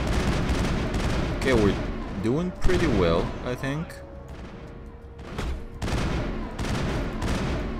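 A futuristic gun fires sharp blasts.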